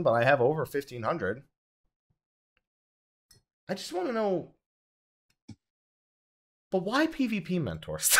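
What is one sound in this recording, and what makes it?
A man talks with animation through a microphone, in short bursts.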